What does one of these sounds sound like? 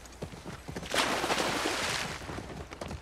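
A horse splashes through a shallow stream.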